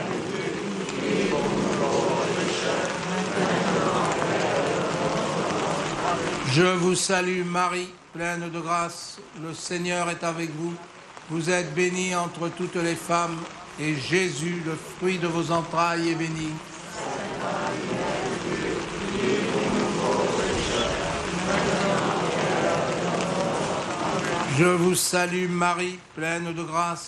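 A large crowd sings together outdoors.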